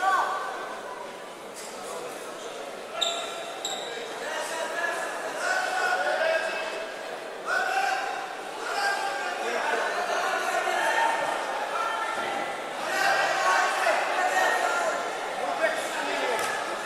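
A crowd of men and women chatters and calls out in a large echoing hall.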